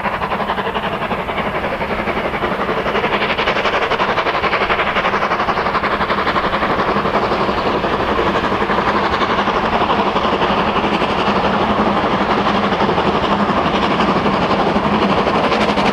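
A steam locomotive chuffs hard and grows steadily louder as it draws near.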